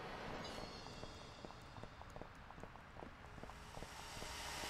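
Footsteps tap on pavement at a walking pace.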